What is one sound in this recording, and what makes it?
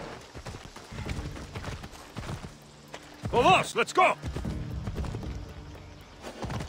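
A horse's hooves clop and thud at a gallop.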